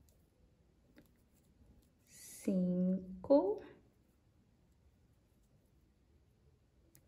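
A metal crochet hook softly pulls through yarn.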